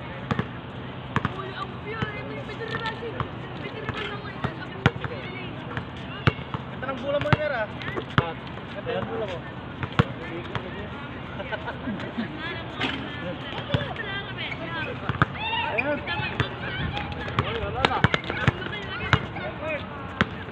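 A basketball bounces on an outdoor court with sharp thuds.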